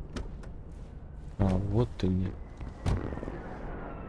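A car door thuds as a man climbs into the back seat.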